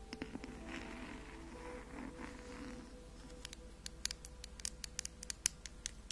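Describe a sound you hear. Fingernails tap on a glass jar close to a microphone.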